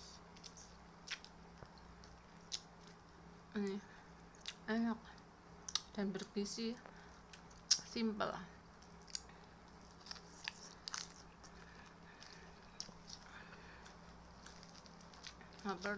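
Small eating clicks and crunches sound close by.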